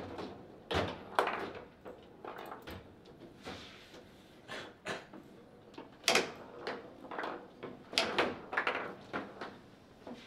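Table football rods knock and the ball clacks against the figures.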